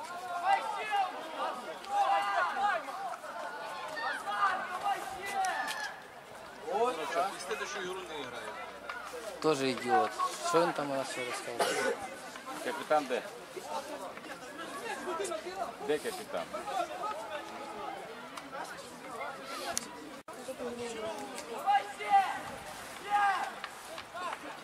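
Young men shout and argue loudly outdoors.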